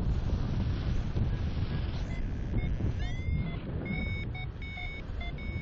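Wind roars and buffets in gusts.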